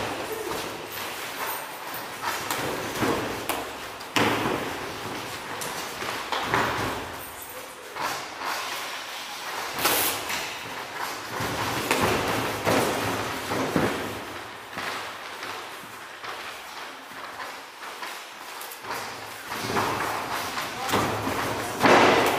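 Boxing gloves thud against each other and against bodies in a large echoing hall.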